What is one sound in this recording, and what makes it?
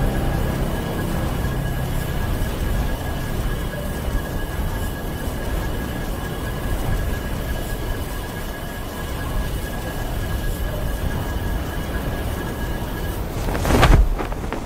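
A strong wind rushes steadily during a skydive.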